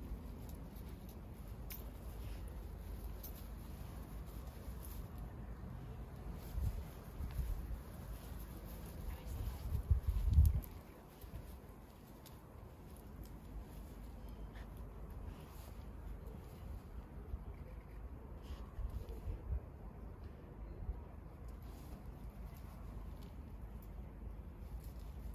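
A dog sniffs at the ground.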